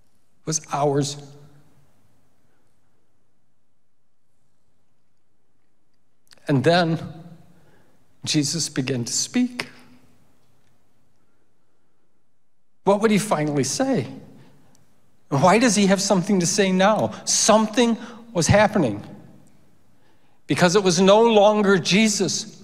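A middle-aged man speaks into a microphone in halting phrases with long pauses.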